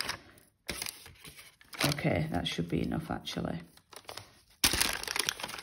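Tissue paper crinkles and rustles close by.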